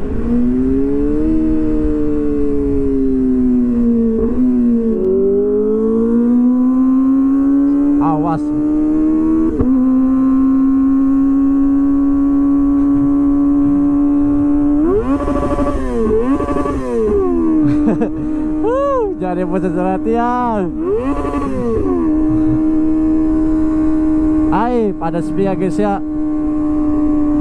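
A motorcycle engine drones steadily at speed, rising and falling in pitch.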